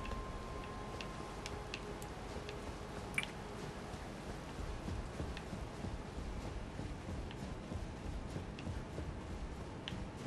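Footsteps thud quickly on a stone floor in a large echoing hall.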